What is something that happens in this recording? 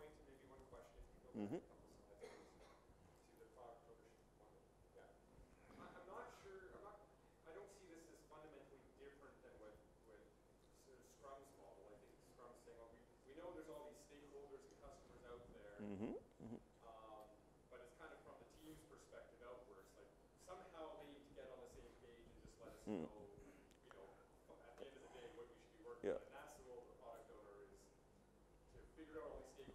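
A middle-aged man speaks calmly through a microphone in a large room.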